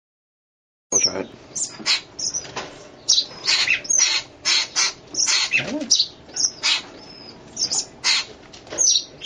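A young bird squawks and hisses in short, rapid bursts.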